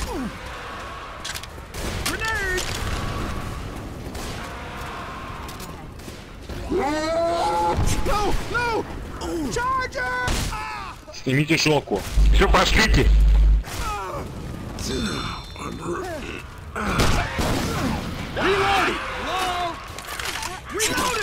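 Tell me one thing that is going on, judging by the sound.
Rifle shots fire in bursts.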